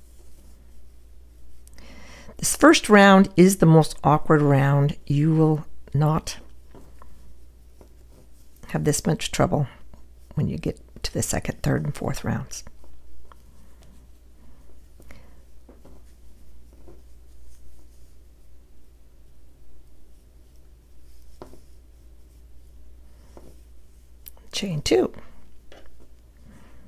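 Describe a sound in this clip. A crochet hook softly pulls and loops yarn.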